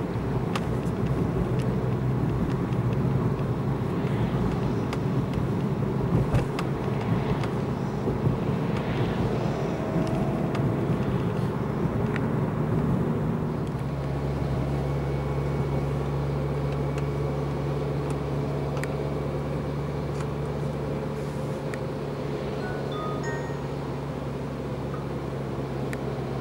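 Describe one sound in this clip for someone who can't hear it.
Raindrops tap on a windscreen.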